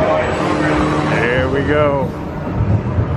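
Wheels squeal against a curving rail.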